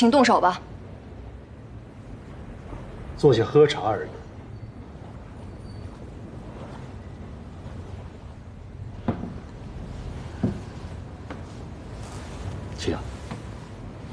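A middle-aged man speaks politely and calmly nearby.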